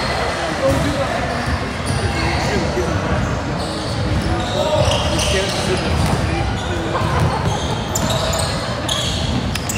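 Young players shout and call out across the court.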